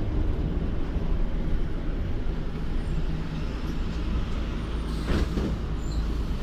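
A bus engine rumbles low and steady while the bus drives.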